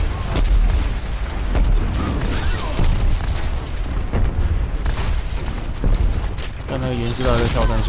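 Gunfire from a game pops and booms repeatedly.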